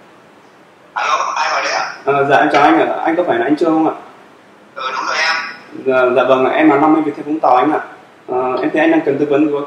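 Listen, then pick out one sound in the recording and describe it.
A man talks calmly into a phone.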